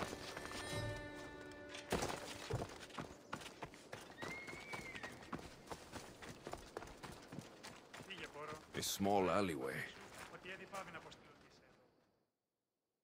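Footsteps run quickly over ground and stone.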